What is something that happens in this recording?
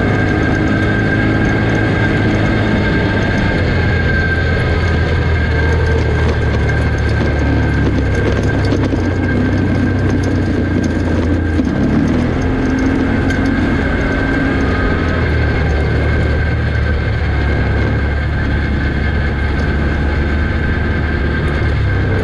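Tyres rumble and crunch over a dirt track.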